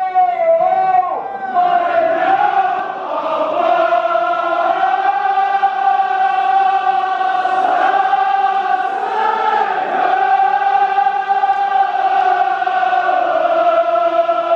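A large crowd of men chants loudly in unison.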